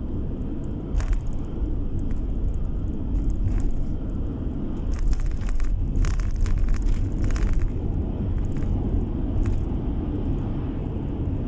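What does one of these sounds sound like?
A passing truck rumbles close by.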